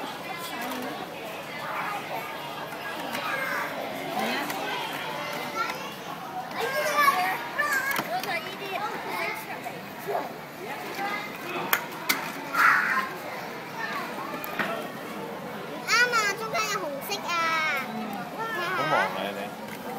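Young children chatter and call out close by.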